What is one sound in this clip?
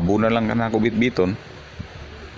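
A man speaks in a flat, computer-made voice.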